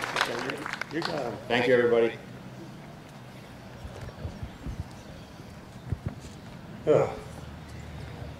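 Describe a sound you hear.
A man speaks calmly into a microphone over a loudspeaker, outdoors.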